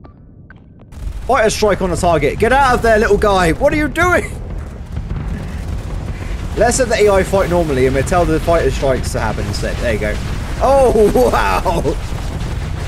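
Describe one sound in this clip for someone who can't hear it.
Spaceship weapons fire in rapid bursts.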